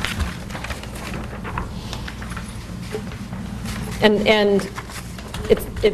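Paper rustles as sheets are handled.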